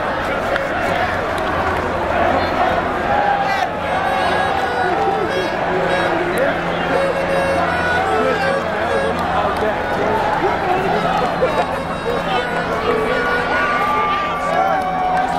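A large crowd of men and women cheers and shouts outdoors.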